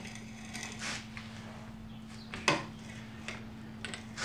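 A hand drill turns with a soft whirring.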